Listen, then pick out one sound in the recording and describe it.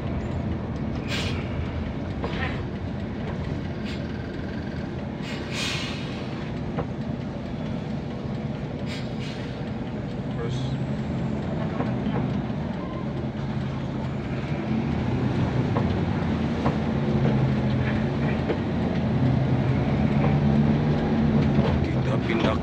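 A vehicle engine hums steadily from inside, rising and falling as it speeds up.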